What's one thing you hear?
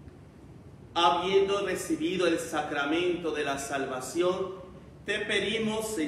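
A man speaks calmly and clearly into a microphone, his voice ringing in an echoing room.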